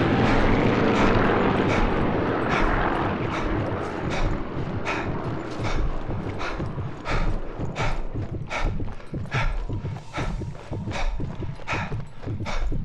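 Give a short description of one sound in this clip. Footsteps thud quickly through grass and then onto stone.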